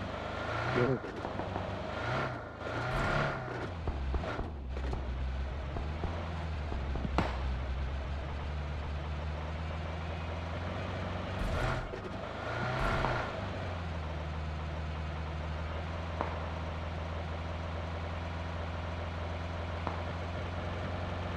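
A car engine drones steadily.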